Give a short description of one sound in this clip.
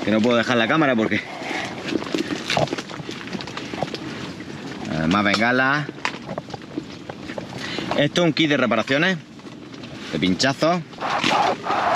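A man talks animatedly close to the microphone.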